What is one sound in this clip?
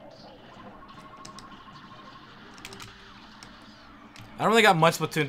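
Laser blasts and shots crackle faintly from a video game.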